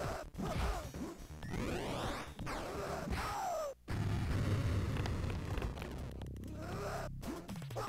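Fast electronic game music plays throughout.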